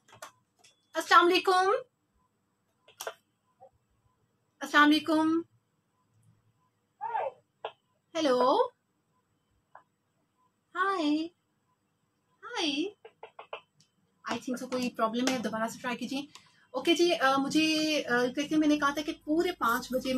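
A young woman speaks close into a microphone, in short phrases with pauses, then more steadily.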